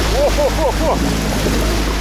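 Muddy water rushes past.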